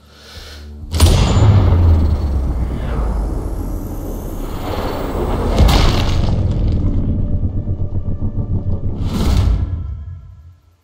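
A bullet rushes through the air with a deep, steady roar.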